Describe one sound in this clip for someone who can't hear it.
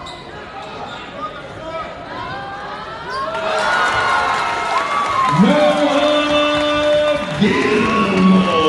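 A crowd cheers and shouts in a large echoing gym, growing louder.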